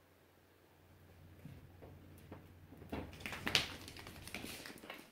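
A puppy's paws scramble on a wooden floor.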